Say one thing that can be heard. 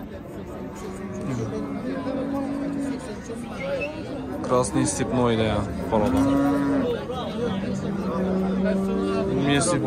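A crowd of men talk and call out all around, outdoors.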